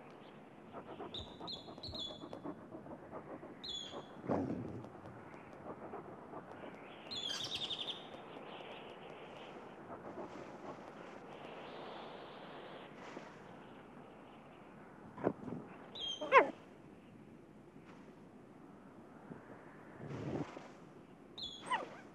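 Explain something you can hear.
A coyote's paws scrabble and scrape on rock.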